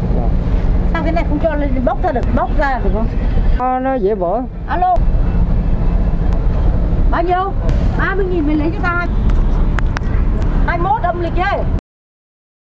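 A woman talks close by.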